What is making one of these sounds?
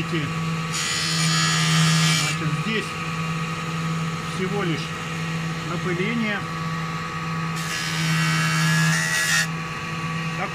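A saw blade grinds loudly through hard material in bursts.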